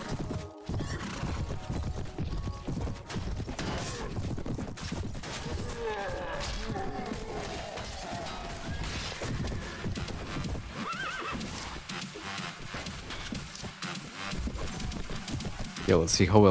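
Horses gallop with heavy, rapid hoofbeats.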